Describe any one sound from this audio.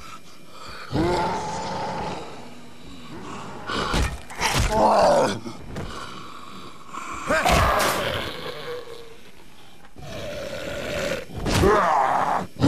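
Heavy blows thud and crunch during a brawl.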